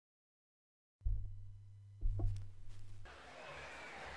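The stylus drops onto a spinning record with a soft thump.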